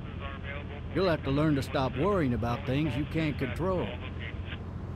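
A man speaks from the front seat.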